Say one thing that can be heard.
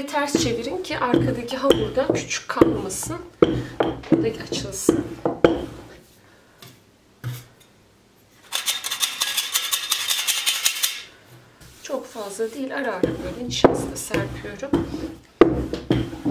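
A rolling pin rolls over dough on a wooden board.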